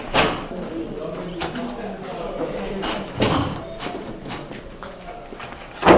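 Footsteps tap along a hard floor in an echoing hallway.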